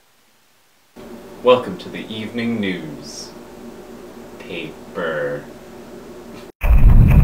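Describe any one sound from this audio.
A young man speaks, heard through a small speaker.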